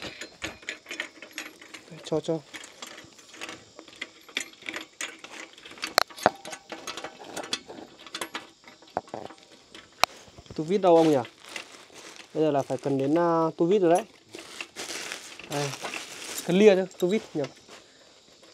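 Metal parts clink and tap as a pole is fitted together.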